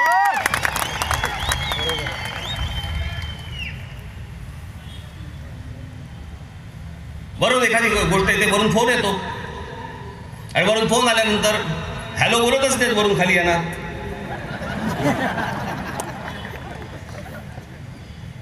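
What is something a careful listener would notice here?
A large crowd murmurs in the background.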